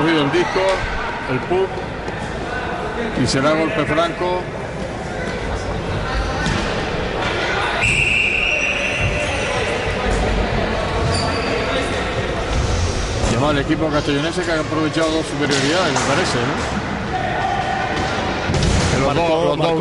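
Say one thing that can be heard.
Roller skate wheels rumble on a wooden floor.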